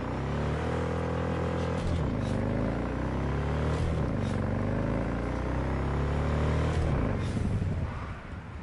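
A motorcycle engine revs up loudly, climbing in pitch and dropping back with each gear change.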